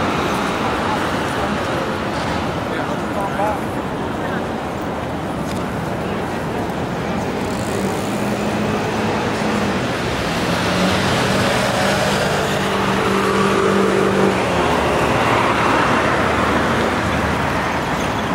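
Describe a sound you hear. City traffic hums steadily outdoors.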